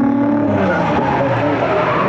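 Tyres squeal on wet asphalt.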